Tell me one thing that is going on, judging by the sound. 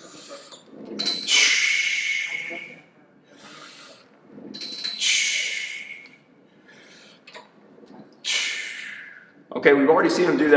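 A weight machine's cable whooshes as a handle is pulled down and let back up.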